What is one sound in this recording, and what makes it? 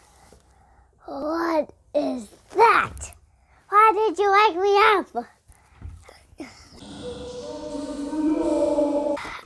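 A young girl speaks playfully in a high voice, close by.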